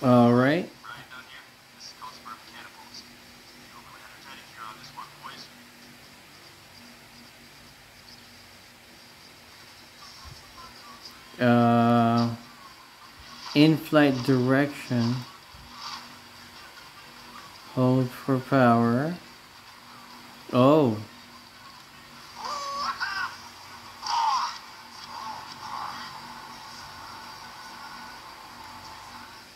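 A handheld game console plays tinny game sounds through its small speaker.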